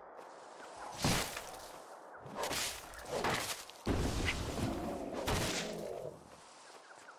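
A small character swishes through tall grass.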